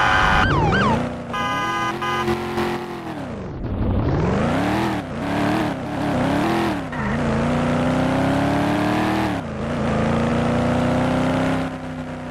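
A car engine revs up and shifts through gears as it speeds up.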